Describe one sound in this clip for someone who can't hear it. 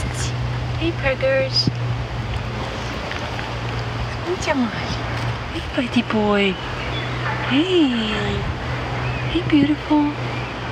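A cat meows softly several times.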